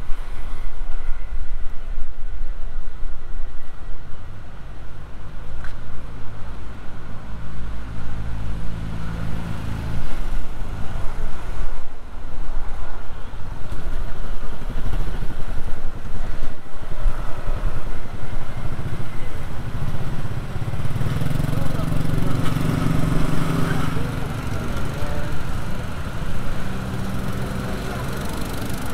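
Traffic rumbles steadily on a nearby street, outdoors.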